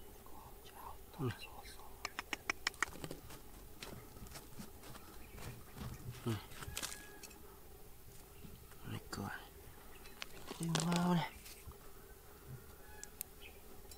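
Fingers scrape and rake through dry, gravelly soil.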